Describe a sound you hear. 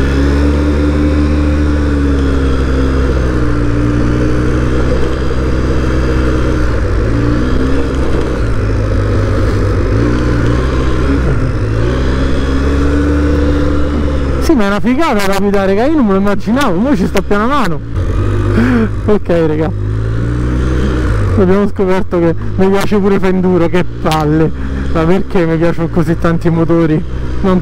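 A quad bike engine hums steadily.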